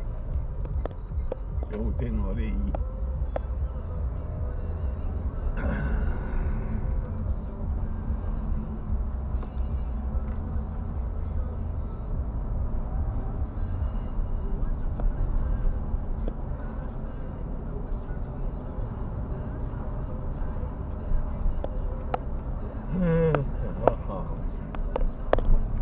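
A car's engine and tyres rumble, heard from inside as it drives along a city street.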